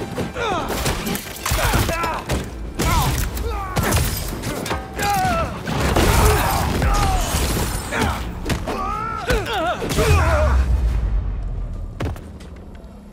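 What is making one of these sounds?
Punches and kicks land with heavy thuds during a fight.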